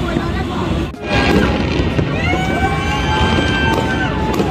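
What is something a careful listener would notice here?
Fireworks crackle and pop in the distance.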